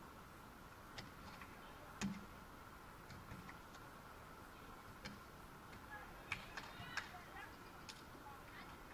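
A volleyball is hit with dull thuds in a large echoing hall.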